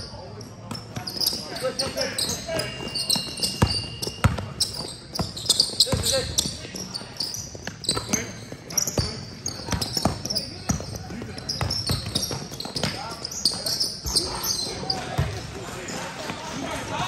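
Sneakers squeak on a hard court in an echoing gym.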